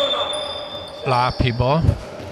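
Players shout to each other across an echoing hall.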